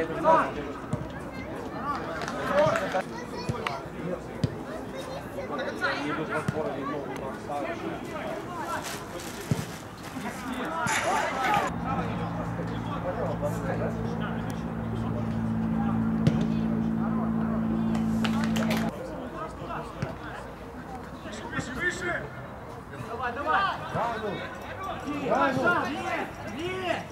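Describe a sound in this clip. Men shout to each other across an outdoor football pitch.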